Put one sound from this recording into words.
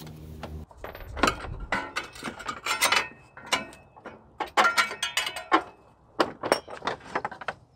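Metal tools clink and clatter.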